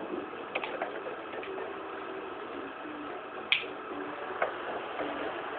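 Water rushes and splashes against a moving boat, heard through a television speaker.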